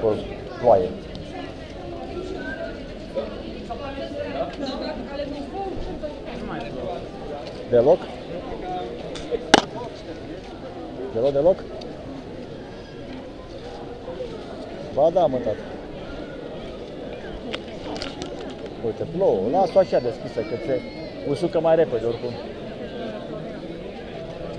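Many people talk in a low murmur outdoors.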